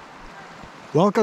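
A middle-aged man starts speaking close to the microphone.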